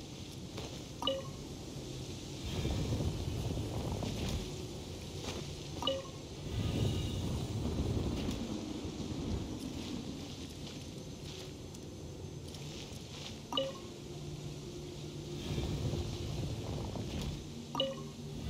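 A bright chime rings out several times.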